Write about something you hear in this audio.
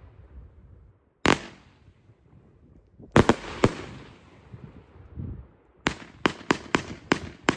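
Fireworks crackle and fizz as sparks fall.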